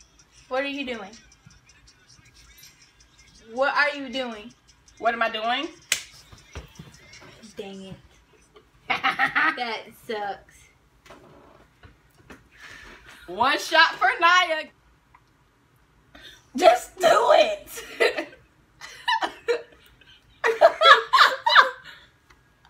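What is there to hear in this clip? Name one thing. A second young woman answers with animation close by.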